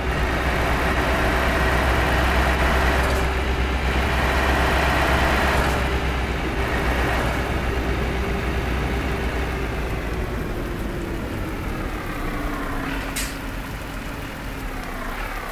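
Tyres roll on a road with a steady rush.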